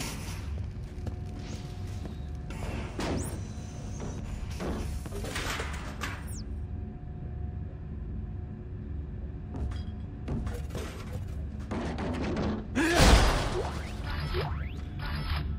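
Heavy boots thud on a hard floor.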